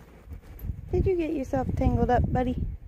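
A small dog whines and yelps close by.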